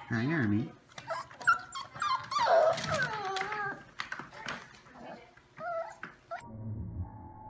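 Puppies yelp and whine in high voices.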